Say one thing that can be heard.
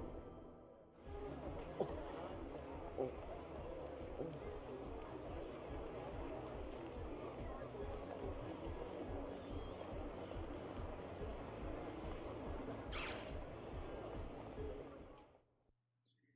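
A busy street crowd bustles and murmurs.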